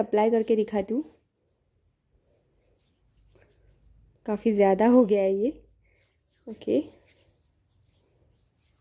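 Hands rub lotion together with a soft, slippery sound.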